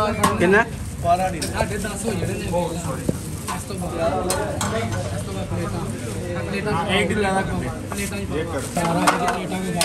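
Several men talk loudly and with animation close by.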